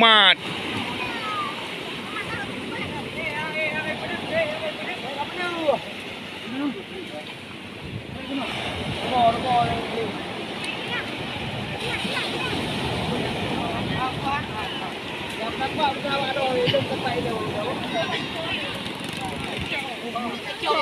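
Waves break and wash steadily onto the shore close by.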